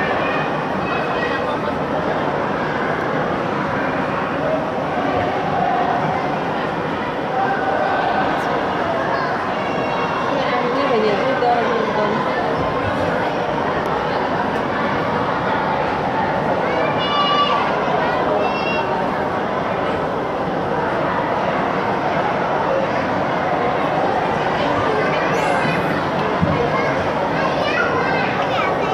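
A crowd of people chatters throughout a large echoing hall.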